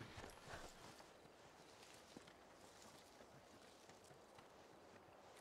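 A person crawls and scuffs softly over dirt.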